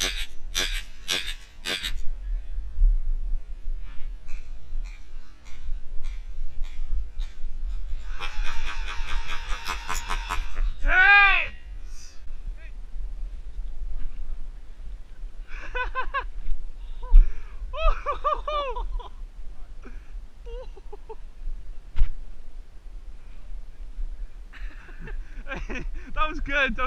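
Dry bracken rustles and swishes underfoot.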